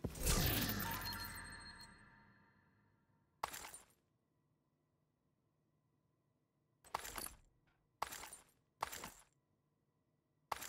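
Short electronic menu sounds whoosh and chime.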